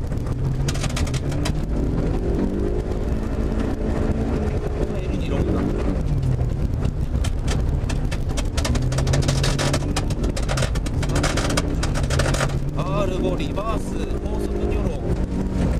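Tyres crunch and hiss on packed snow.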